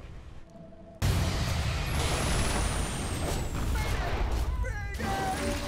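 Magic spells burst and roar in a loud, rumbling clash.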